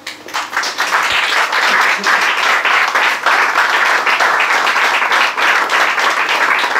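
An audience claps and applauds steadily.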